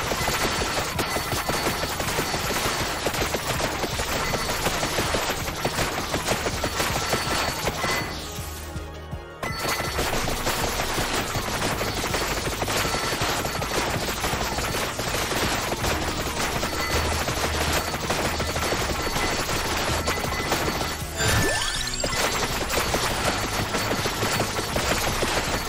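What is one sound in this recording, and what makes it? Rapid electronic hit and blast effects crackle without pause, briefly dropping away once.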